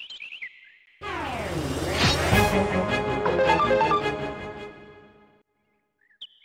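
A loud swooshing burst of game music plays and fades.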